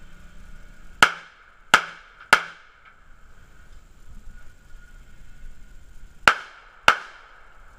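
A handgun fires sharp shots that crack and echo briefly.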